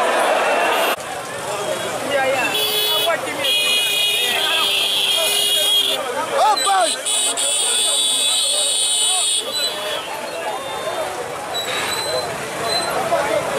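Men nearby talk excitedly over one another.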